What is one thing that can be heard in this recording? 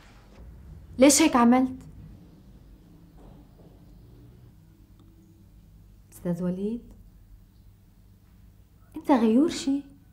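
A woman speaks softly and nearby.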